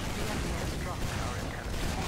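A shotgun fires in quick blasts.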